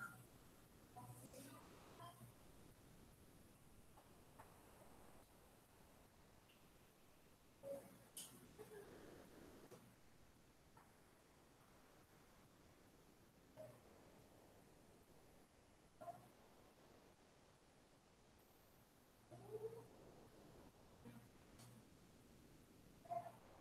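A woman speaks calmly through an online call, with long pauses.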